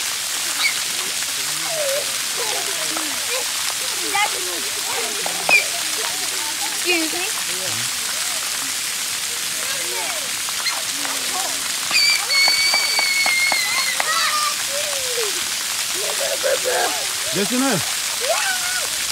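Water fountains spray and splash steadily outdoors.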